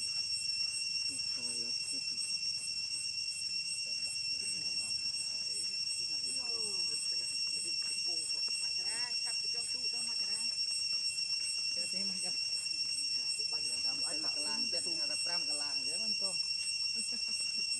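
A baby monkey squeals and whimpers close by.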